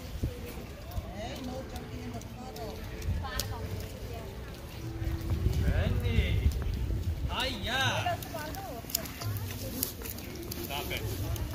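Men and women talk casually nearby.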